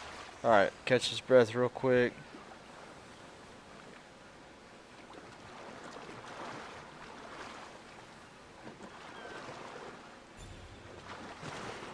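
Water splashes softly as a swimmer strokes through gentle waves.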